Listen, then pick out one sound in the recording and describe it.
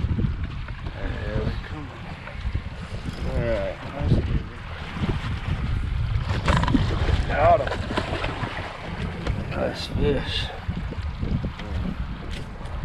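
A man talks with excitement close by.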